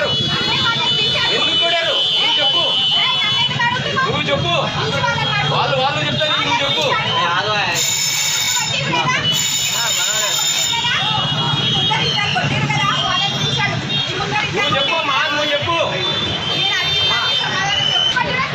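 A young woman argues loudly and angrily up close.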